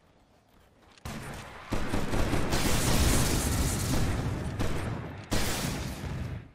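Magic spells blast and crackle in a noisy fight.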